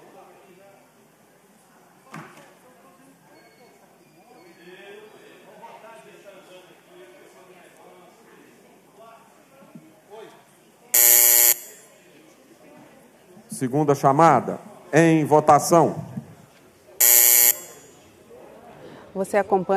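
Many people murmur and chat in a large echoing hall.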